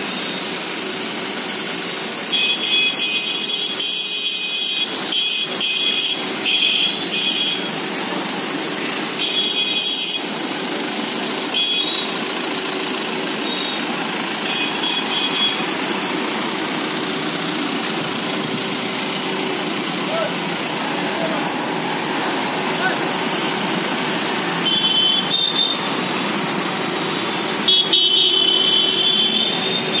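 Car and jeep engines rumble steadily as vehicles drive past close by.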